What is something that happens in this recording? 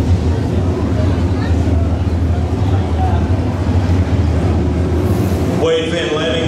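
Several race car engines rumble and roar around a dirt track.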